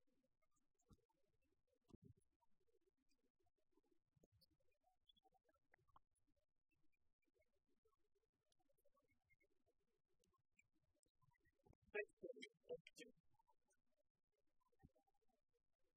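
Rackets strike a shuttlecock with sharp taps.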